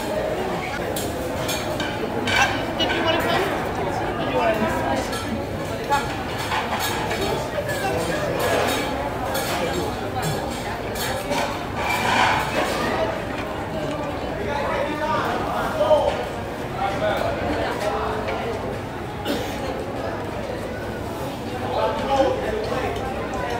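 Several adults talk and chatter in a busy room nearby.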